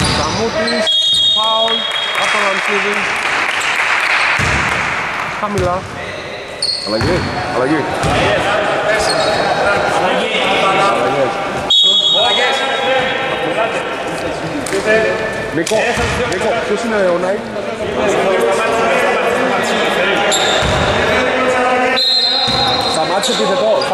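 A referee blows a shrill whistle in a large echoing hall.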